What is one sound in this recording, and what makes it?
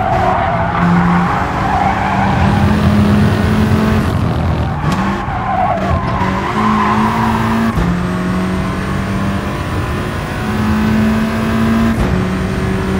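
A racing car engine roars and revs, shifting up and down through the gears.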